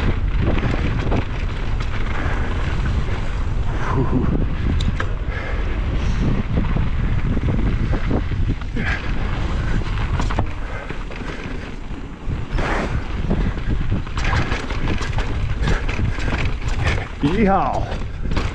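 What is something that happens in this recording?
Bike tyres crunch and rattle over dirt and rocks.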